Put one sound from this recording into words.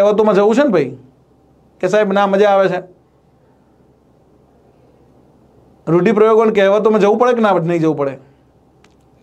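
A middle-aged man speaks clearly into a close microphone, in short bursts with pauses.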